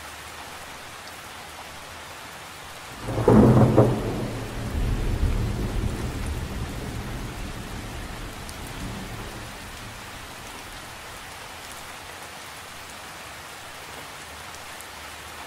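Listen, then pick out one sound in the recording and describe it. Light rain patters steadily on a lake's surface outdoors.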